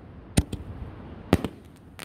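A firework rocket whooshes upward.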